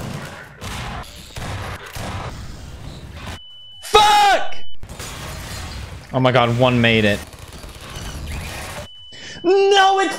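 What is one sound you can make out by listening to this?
Gunshots and an explosion boom.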